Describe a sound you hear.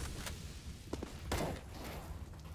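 A rifle fires a short burst at close range.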